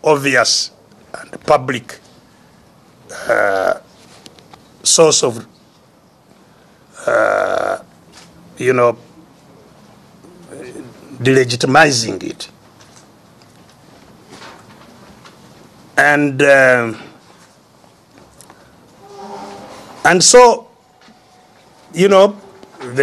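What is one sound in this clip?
An elderly man speaks slowly and forcefully into a microphone, with long pauses.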